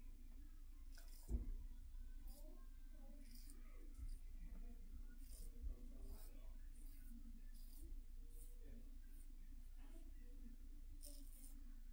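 A razor scrapes across stubble close by, in short repeated strokes.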